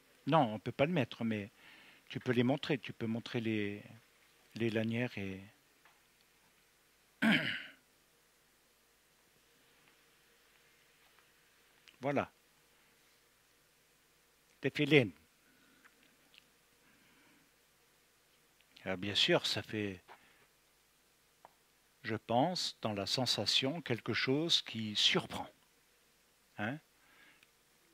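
An elderly man speaks with animation through a headset microphone.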